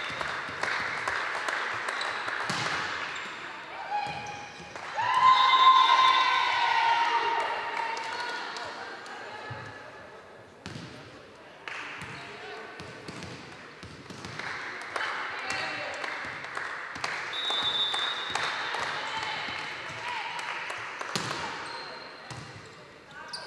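A volleyball is struck with sharp slaps in a large echoing hall.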